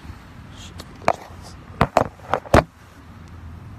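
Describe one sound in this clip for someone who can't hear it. Phone handling knocks and rustles sharply close up.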